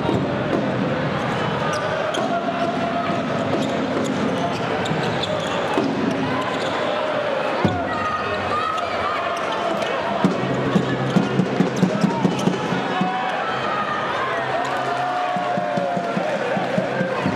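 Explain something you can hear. A handball bounces on the court floor.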